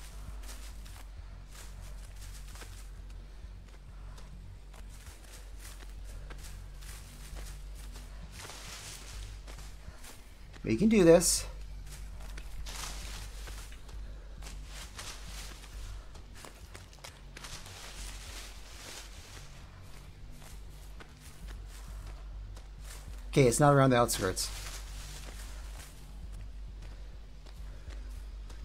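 Footsteps rustle through tall, dry grass.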